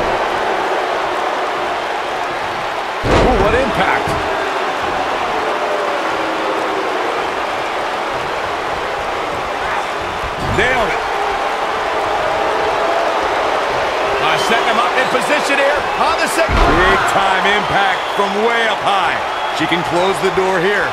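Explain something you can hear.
A large crowd cheers and murmurs steadily in an echoing arena.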